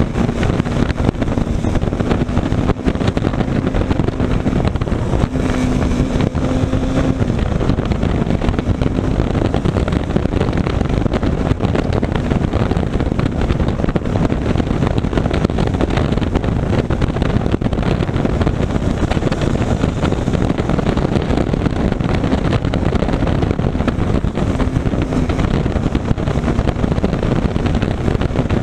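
A motorcycle engine hums steadily up close as it rides along.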